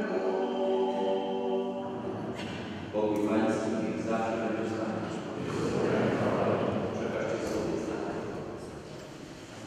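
A crowd of men and women sings together in a large echoing hall.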